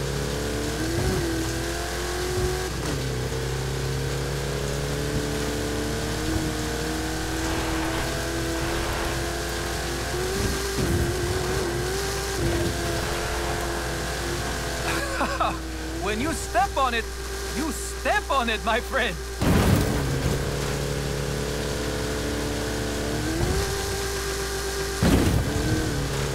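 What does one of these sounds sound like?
Tyres thump and crunch over sand.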